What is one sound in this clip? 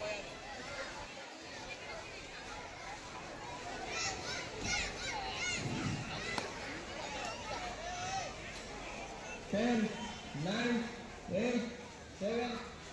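Teenage boys shout and call out outdoors.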